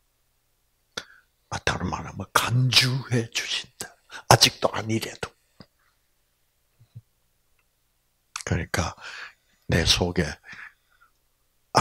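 An elderly man speaks with animation through a microphone, with pauses.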